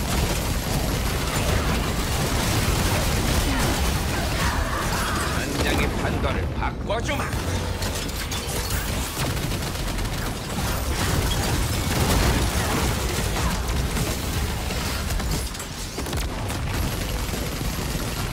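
Magic spells blast and crackle in a fast, noisy battle.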